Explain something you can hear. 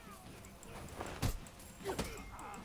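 Blades clash with sharp metallic hits.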